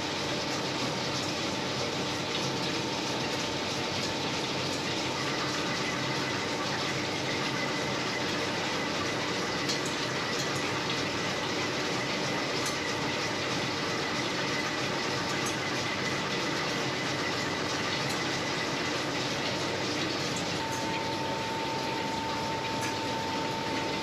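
A milling machine hums and whirs steadily.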